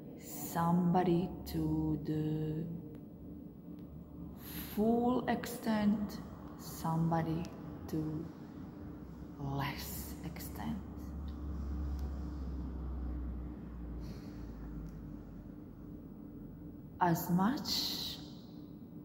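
A woman speaks with animation close to a microphone, with pauses.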